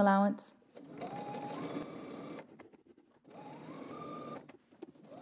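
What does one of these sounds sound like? A sewing machine runs in quick bursts, whirring and stitching.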